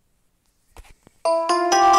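Upbeat music suddenly starts playing.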